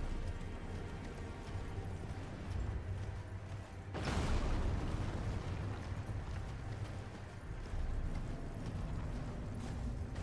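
A horse gallops over snowy ground.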